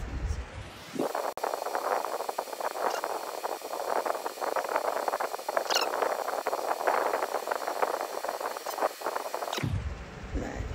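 A makeup brush scratches softly against skin.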